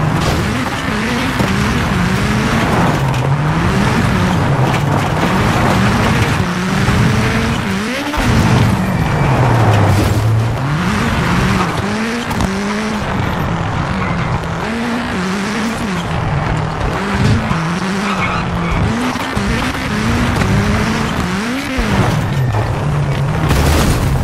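A rally car engine roars, revving up and down through gear changes.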